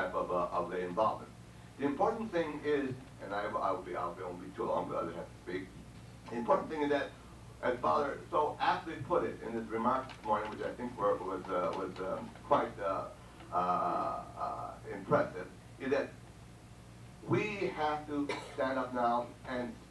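An elderly man speaks with animation through a microphone in a room with some echo.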